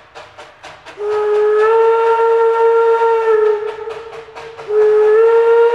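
A steam locomotive whistle blows loudly, in two long blasts.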